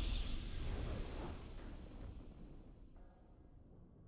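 A triumphant game fanfare bursts out and slowly fades.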